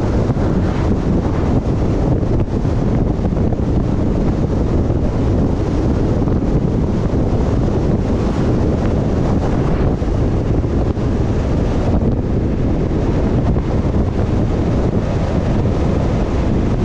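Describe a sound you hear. Wind roars loudly across a microphone outdoors.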